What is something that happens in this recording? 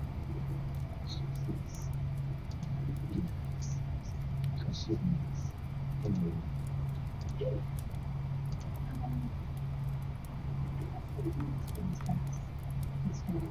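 Soft electronic menu blips sound now and then.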